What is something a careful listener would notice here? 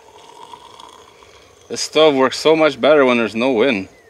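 Water pours from a kettle into a cup.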